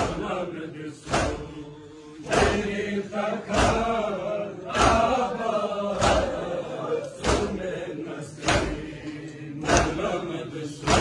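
A crowd of men chant together in a large echoing hall.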